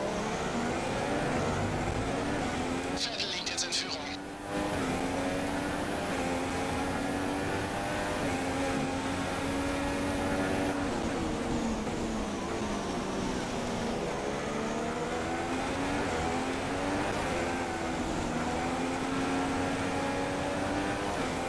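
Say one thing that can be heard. A racing car engine whines loudly, rising and falling in pitch as it shifts gears.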